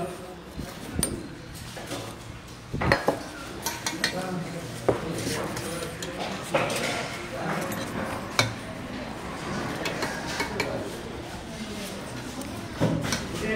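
Steel dishes clink and clatter against each other.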